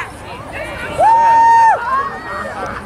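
A referee's whistle blows a long shrill blast.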